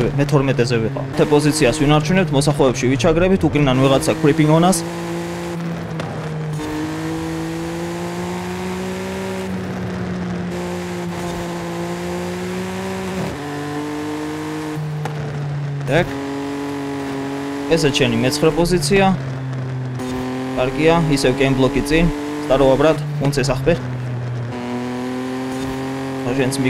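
A car engine revs high and steady, shifting gears as the car races.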